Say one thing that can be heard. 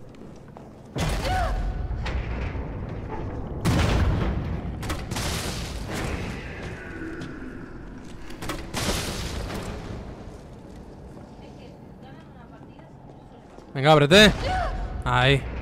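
Explosions boom and crackle with a rumbling echo.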